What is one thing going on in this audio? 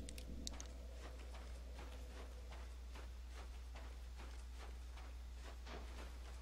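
Footsteps of armored boots thud quickly and steadily on stone.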